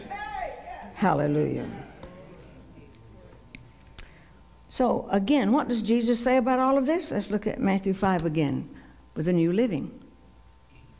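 An older woman speaks with feeling into a microphone.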